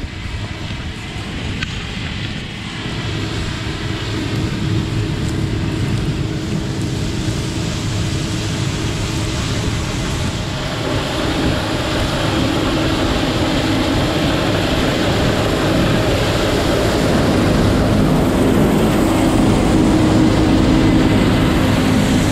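A combine harvester's engine drones and grows louder as it approaches.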